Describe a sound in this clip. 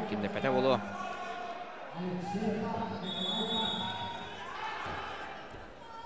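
A crowd of spectators shouts and calls out in a large echoing hall.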